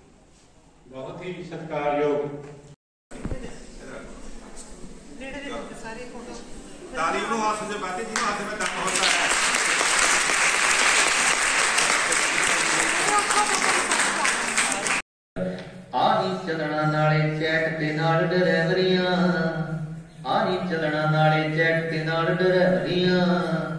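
A man speaks steadily into a microphone, reporting.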